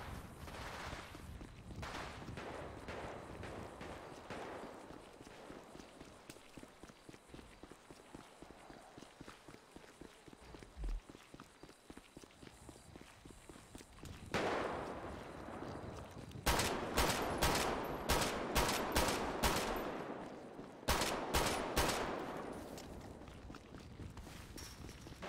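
Footsteps patter quickly on a dirt road.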